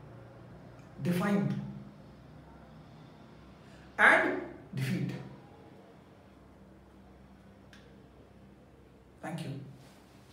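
A middle-aged man speaks close to a microphone in short, emphatic bursts with pauses between.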